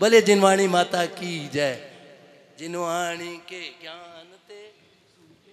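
An elderly man sings loudly through a microphone.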